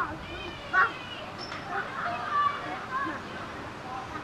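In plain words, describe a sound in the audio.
A toddler babbles nearby.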